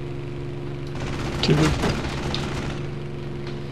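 Machine guns fire a rapid burst.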